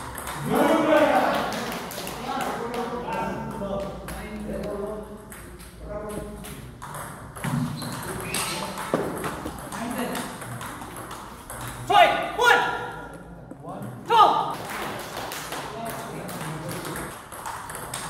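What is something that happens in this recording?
Table tennis balls click sharply against paddles and the table.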